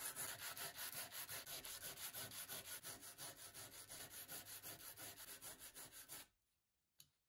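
Sandpaper rubs back and forth on wood in quick strokes.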